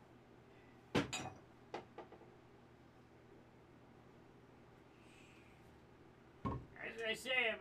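Pieces of wood knock down onto a wooden block.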